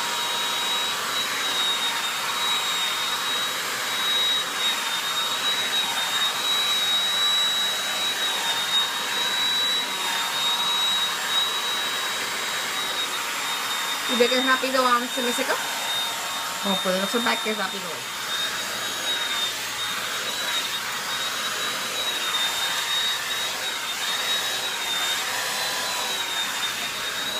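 A hair dryer blows with a steady whine close by.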